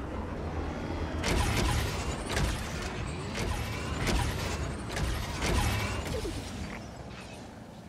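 A hover bike engine hums and roars as the bike speeds along.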